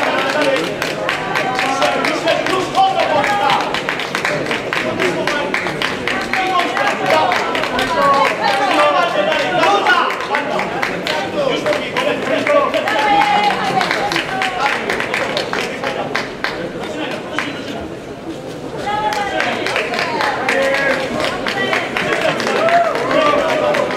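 A large crowd murmurs and shouts in an echoing hall.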